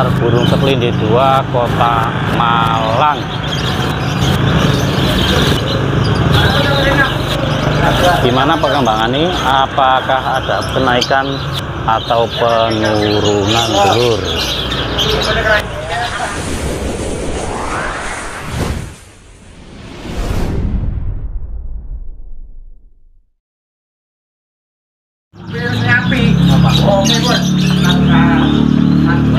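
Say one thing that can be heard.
Caged birds chirp and whistle.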